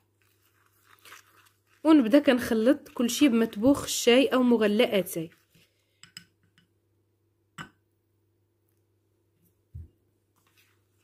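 A spoon scrapes and clinks against a cup.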